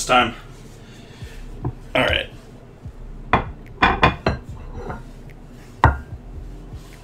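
A metal spatula scrapes and knocks against a pot.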